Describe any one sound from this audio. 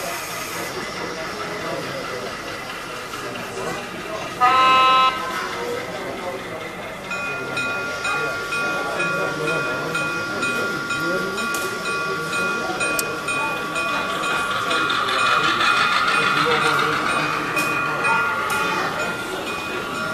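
A small model train rumbles along the track.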